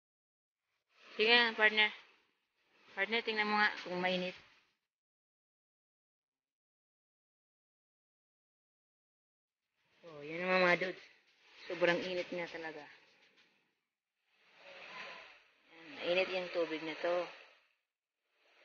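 A young woman speaks calmly close by, in short phrases with pauses.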